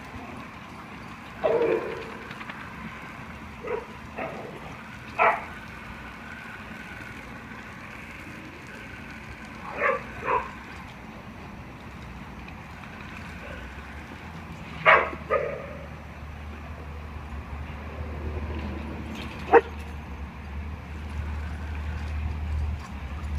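A garden hose sprays water with a steady hiss.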